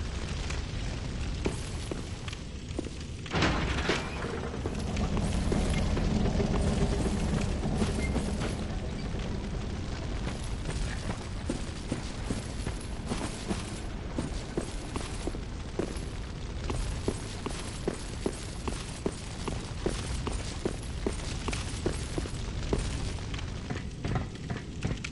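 Armoured footsteps clank on stone, echoing in a vaulted passage.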